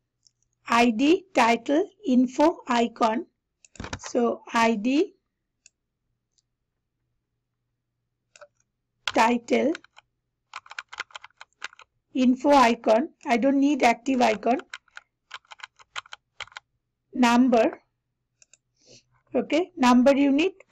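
A young woman speaks calmly into a headset microphone, with pauses.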